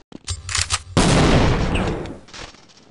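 A grenade explodes with a loud boom nearby.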